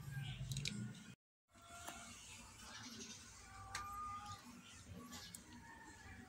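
A plastic charger clip clicks as a hand handles it.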